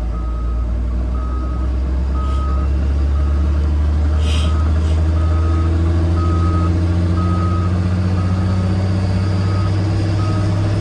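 A heavy diesel engine rumbles close by and slowly revs higher.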